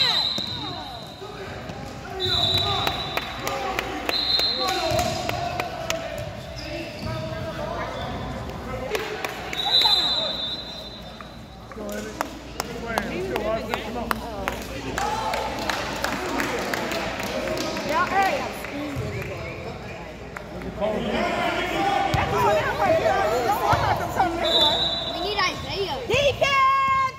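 Spectators and players talk and call out, echoing in a large gym.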